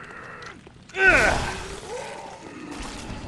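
A blade slashes and strikes with a heavy thud.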